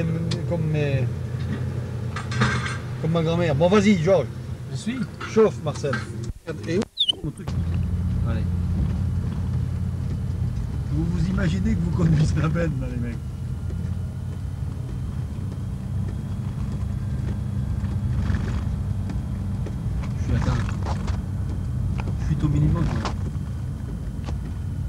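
Tyres roll over a rough dirt road.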